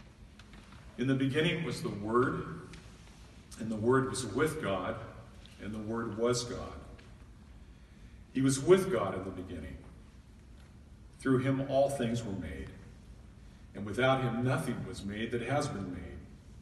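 An older man speaks calmly into a microphone in an echoing hall.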